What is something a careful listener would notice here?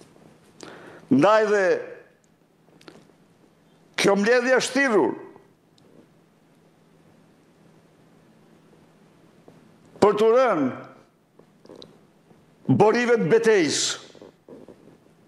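An elderly man speaks slowly into a close microphone, in short phrases with pauses.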